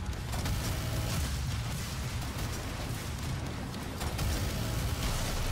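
Spent shell casings clatter.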